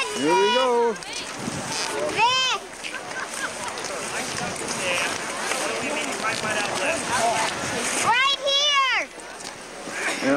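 Skis scrape and crunch on snow.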